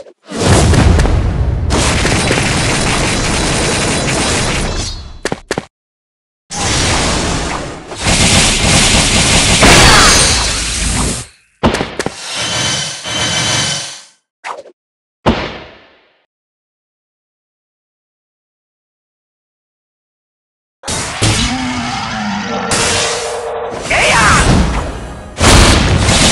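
Game music and battle sound effects play loudly, with short silent breaks.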